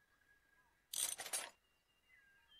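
A short game sound effect plays as an item is picked up.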